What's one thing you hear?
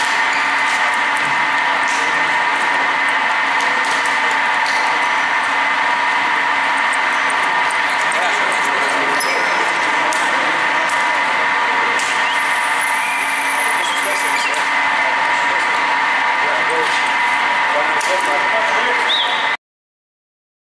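Several men talk and call out in an echoing sports hall.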